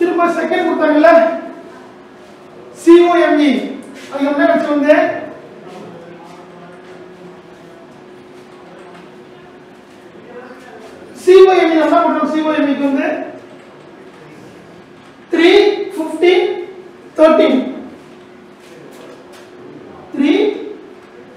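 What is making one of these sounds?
A man speaks loudly and clearly in short bursts, as if teaching, in a slightly echoing room.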